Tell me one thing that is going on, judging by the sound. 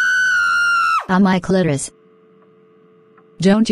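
A young woman groans and speaks in pain.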